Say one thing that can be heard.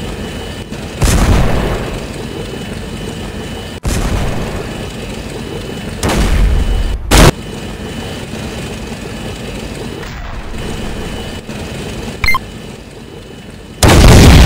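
Tank cannon shots boom loudly.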